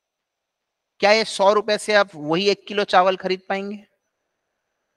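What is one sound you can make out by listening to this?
A man speaks calmly into a microphone, explaining.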